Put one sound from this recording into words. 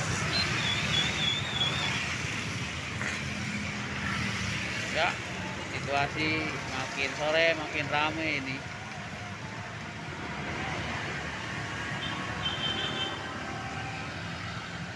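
Car tyres hiss on a wet road.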